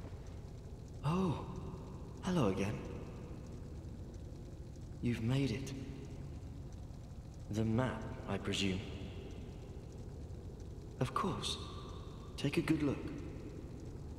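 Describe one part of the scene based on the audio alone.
A man speaks in short, lively bursts, close by.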